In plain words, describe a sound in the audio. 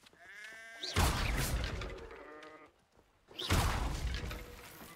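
Wooden barrels smash and splinter.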